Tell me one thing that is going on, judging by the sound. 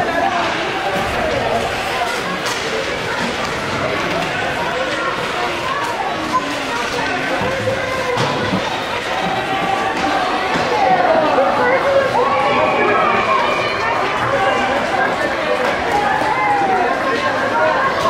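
Hockey sticks clack against the ice and puck.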